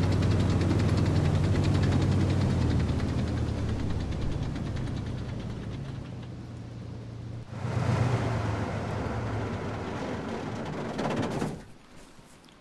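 A tracked vehicle's engine rumbles and idles down.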